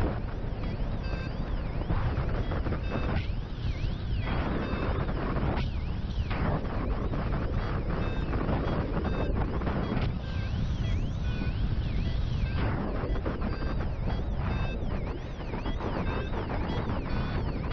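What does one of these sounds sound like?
Wind rushes and buffets loudly in the open air.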